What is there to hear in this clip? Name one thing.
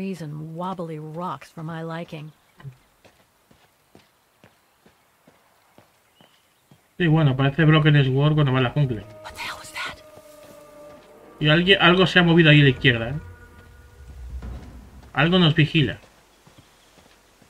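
Footsteps crunch softly on a dirt path.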